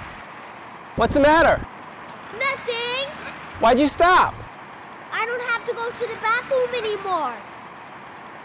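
A child shouts loudly outdoors in several calls.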